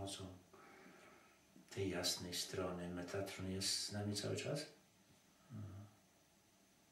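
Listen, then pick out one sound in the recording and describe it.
An elderly man speaks calmly and softly nearby.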